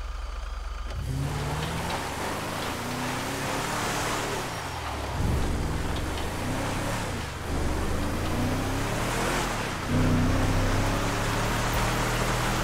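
Tyres crunch and skid on loose dirt.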